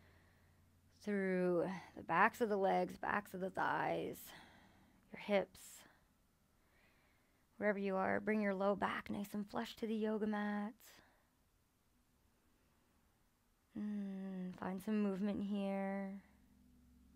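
A woman speaks calmly, close by, in short phrases with pauses.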